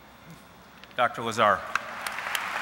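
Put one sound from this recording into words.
A man speaks briefly through a microphone in a large echoing hall.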